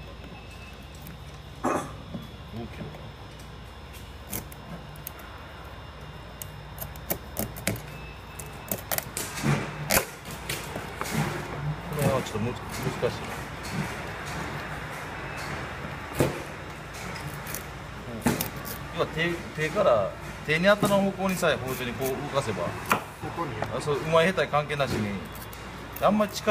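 A knife crunches through crab shell on a cutting board.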